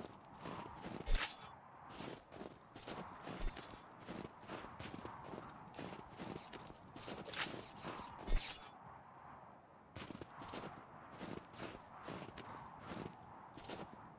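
Short chimes and blips ring out again and again.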